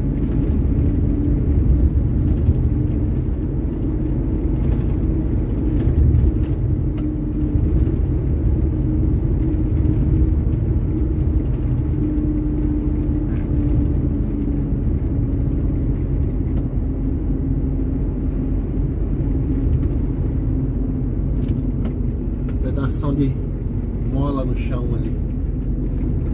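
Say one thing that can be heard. Tyres hum on wet asphalt.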